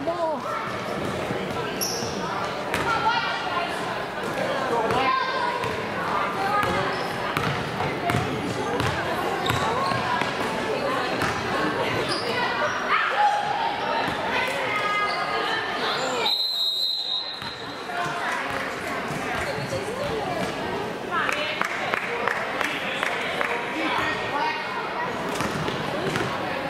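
Spectators chatter in an echoing gym.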